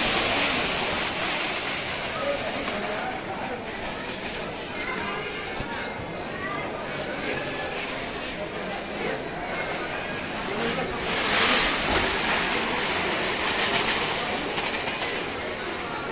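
Dry grain pours and rattles into a large pot.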